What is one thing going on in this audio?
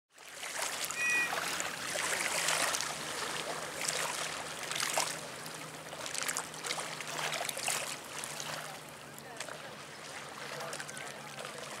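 Small waves lap and splash gently on open water outdoors.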